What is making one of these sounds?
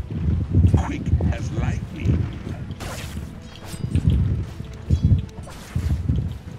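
Magic spell effects whoosh and crackle during a video game fight.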